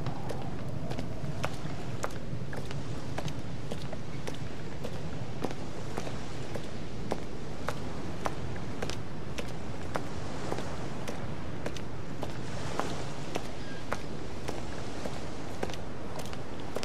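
Waves wash against the shore in a steady rush.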